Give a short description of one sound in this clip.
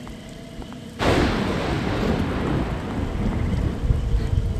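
Heavy rain pours outdoors.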